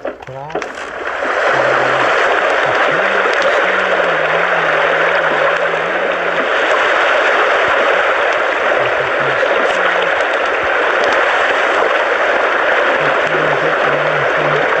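Ocean waves wash steadily.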